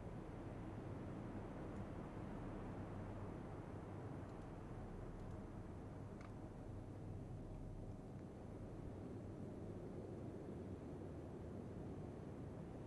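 Rough sea waves churn and splash steadily.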